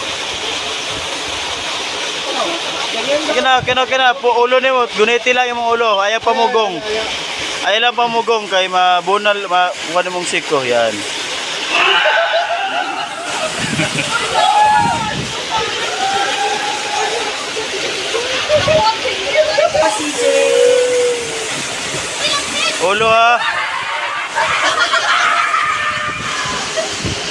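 Water rushes and splashes steadily down a slide.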